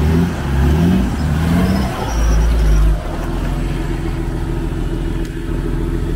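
Tyres splash and squelch in thick mud.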